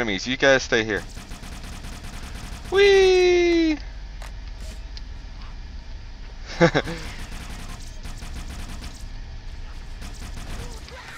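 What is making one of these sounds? Plasma guns fire in rapid, buzzing bursts.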